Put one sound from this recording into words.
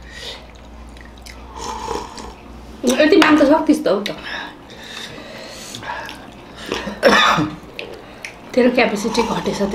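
A man slurps from a small bowl.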